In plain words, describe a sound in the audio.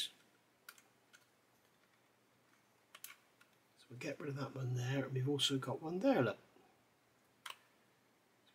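A small metal tool clicks and scrapes against a plastic model part.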